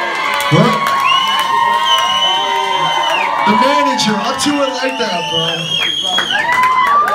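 A man raps loudly through a microphone.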